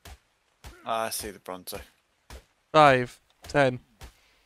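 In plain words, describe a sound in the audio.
A pickaxe strikes flesh with repeated dull thuds.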